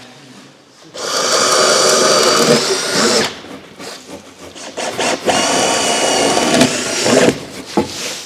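A power drill whirs in bursts.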